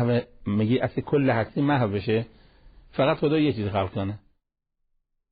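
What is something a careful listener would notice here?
An elderly man speaks with animation into a close microphone.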